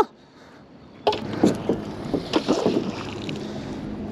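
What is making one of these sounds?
A heavy object splashes into water.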